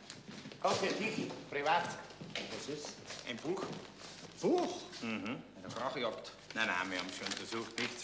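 A second man replies calmly, close by.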